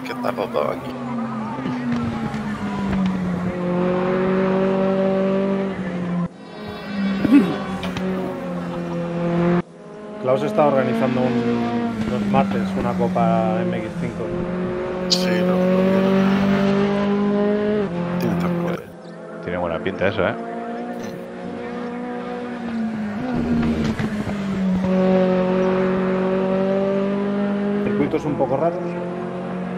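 A racing car engine revs high and drops as the car shifts gears through corners.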